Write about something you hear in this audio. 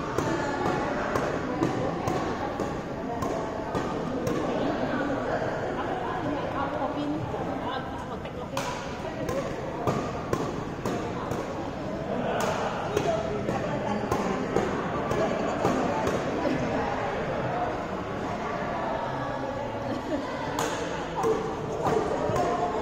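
Badminton rackets smack a shuttlecock back and forth in a large echoing hall.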